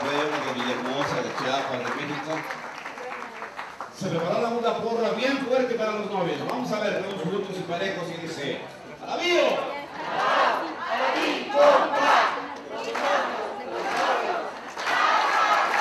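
Adult men and women chat and greet one another nearby.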